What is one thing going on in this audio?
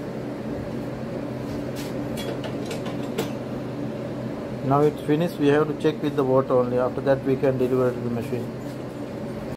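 A washing machine hums steadily.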